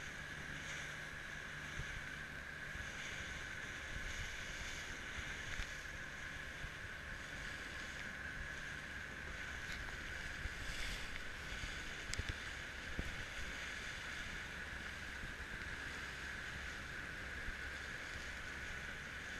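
Strong wind blows steadily outdoors.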